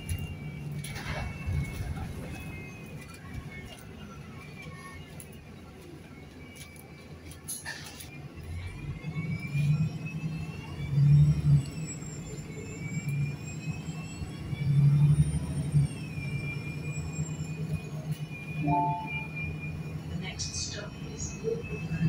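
The bus body rattles and creaks over bumps.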